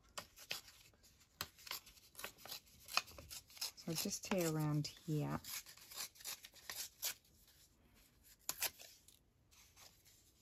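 Paper tears in short rips.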